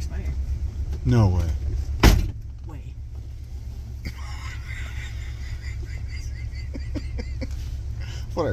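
A car engine hums low and steady inside the vehicle.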